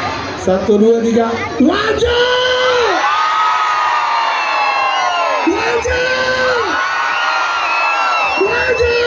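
A large outdoor crowd of young women and men sings along loudly.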